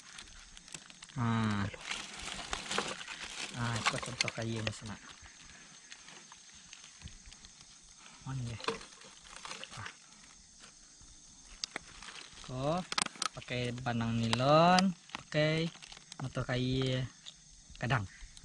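Plastic bottles crinkle and clink in hands.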